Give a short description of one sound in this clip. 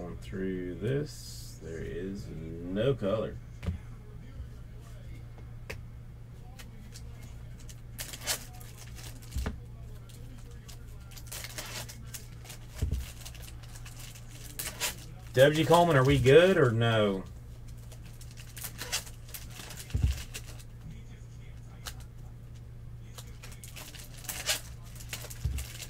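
Trading cards rustle and flick between fingers.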